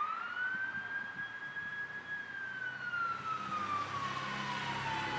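A siren wails, rising then slowly falling in pitch.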